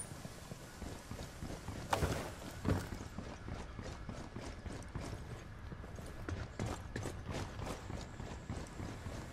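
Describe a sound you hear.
Footsteps thud quickly on hard floors.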